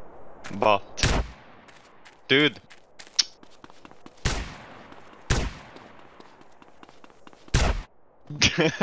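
Shotgun blasts boom loudly, a few seconds apart.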